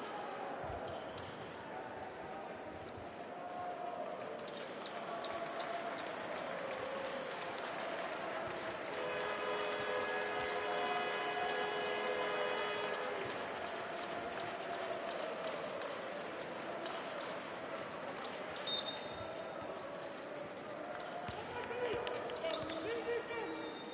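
A large indoor crowd murmurs and chatters, echoing through a big hall.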